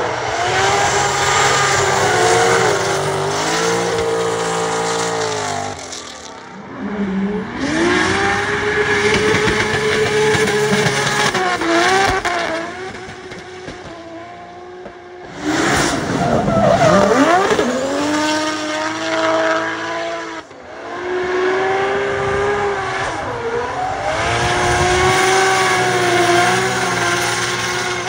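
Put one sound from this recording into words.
Tyres screech and squeal on the track.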